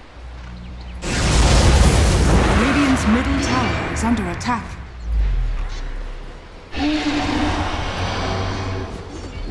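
Game spells whoosh and crackle during a battle.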